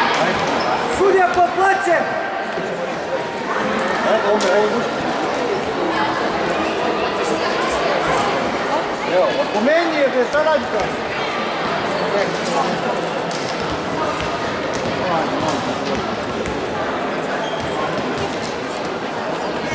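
Young women call out to one another in a large echoing hall.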